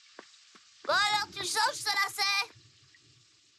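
A young boy speaks in surprise.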